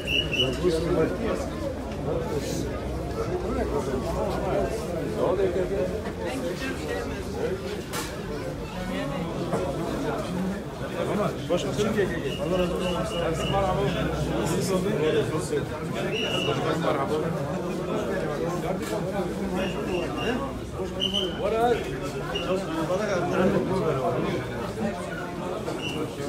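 A crowd of men chatters loudly all around, close by.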